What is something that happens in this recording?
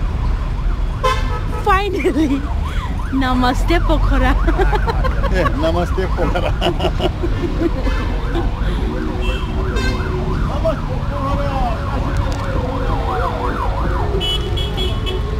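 Men talk loudly in a crowd outdoors.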